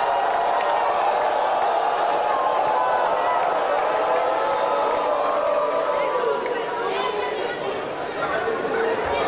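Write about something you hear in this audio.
A choir sings along with a band.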